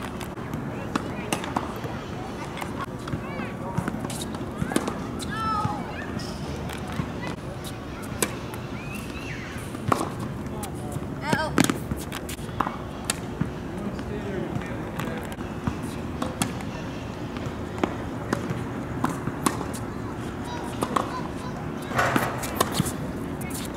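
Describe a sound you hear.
Tennis balls are struck by rackets with sharp pops, outdoors.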